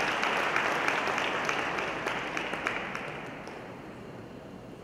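An audience applauds in a large hall, and the clapping fades away.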